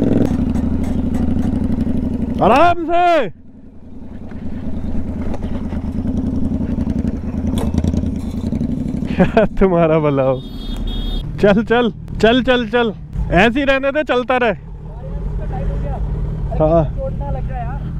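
A motorcycle engine hums steadily while riding.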